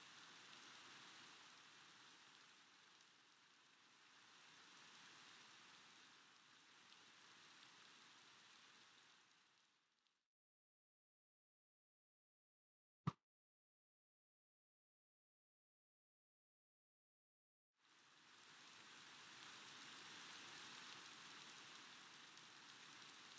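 Rain falls steadily with a soft hiss.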